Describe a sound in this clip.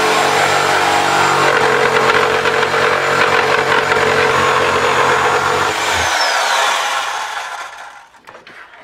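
A jigsaw cuts loudly through a board, then winds down.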